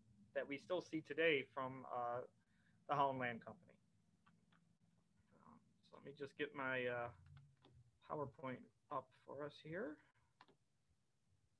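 A young man speaks calmly through a computer microphone.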